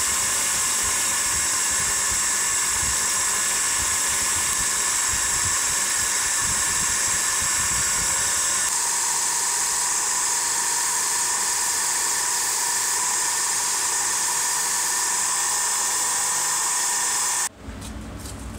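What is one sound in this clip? A bench grinder whirs with a steady high whine.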